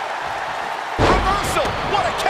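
A heavy body thuds onto a wrestling ring mat.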